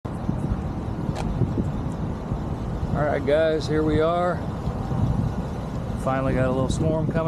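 A truck engine idles close by with a low rumble.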